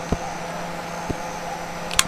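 A lighter flame hisses softly.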